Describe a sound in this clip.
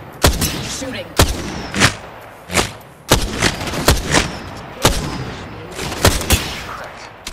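Loud rifle shots ring out, one after another, with sharp echoes.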